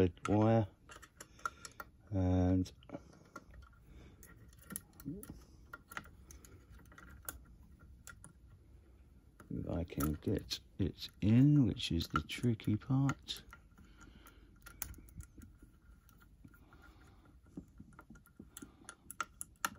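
A metal tool clicks and scrapes inside a lock.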